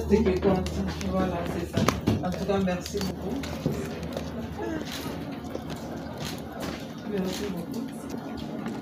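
Women greet each other warmly, talking with animation close by.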